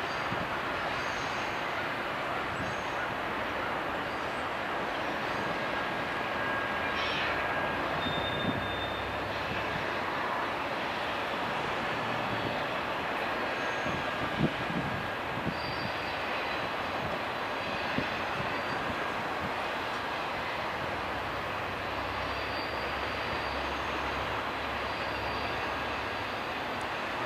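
A long freight train rumbles steadily past with clattering wheels.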